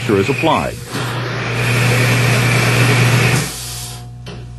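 A spray can hisses.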